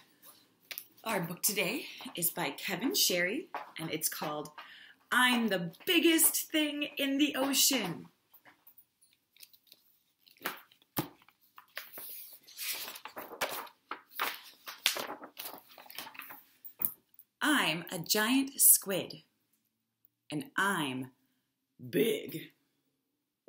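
A woman reads aloud with animation, close by.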